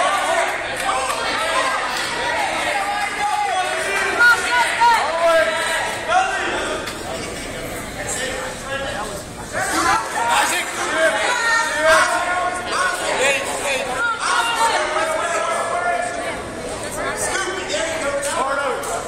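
Spectators shout and cheer loudly in a large echoing hall.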